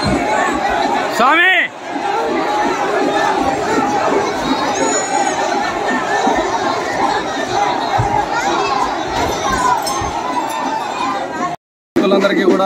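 A large crowd chatters and shouts outdoors.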